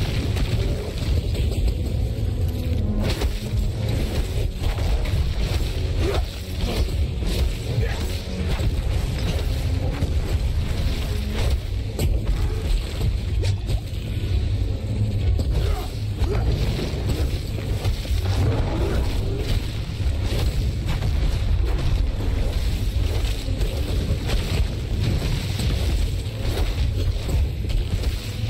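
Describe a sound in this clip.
Magic blasts and weapon strikes crash and thud again and again in a fight.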